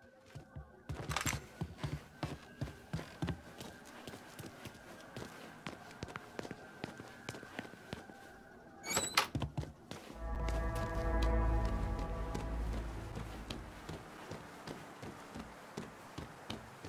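Footsteps creep softly across a floor.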